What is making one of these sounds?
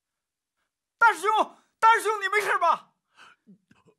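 A young man shouts anxiously.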